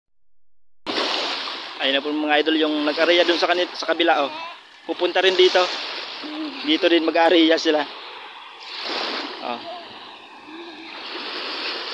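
Shallow water laps gently at the shore.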